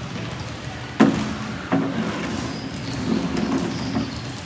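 A basketball bounces on a hard court, echoing under a large roof.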